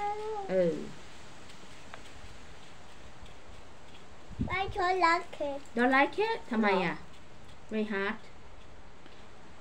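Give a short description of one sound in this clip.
A small girl speaks briefly.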